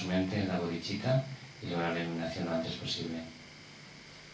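An elderly man chants in a low, steady voice through a microphone.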